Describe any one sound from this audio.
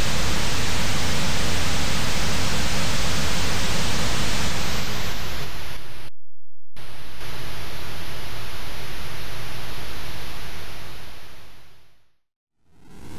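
A spaceship engine roars with a steady rushing hiss, cutting out briefly and then fading away.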